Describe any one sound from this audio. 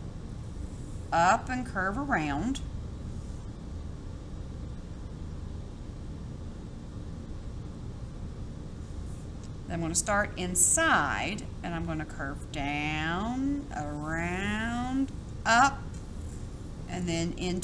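A felt-tip marker squeaks and scratches softly across paper.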